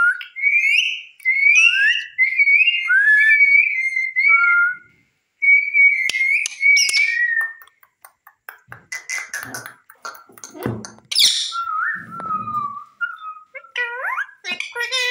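A parrot chirps and whistles shrilly, close by.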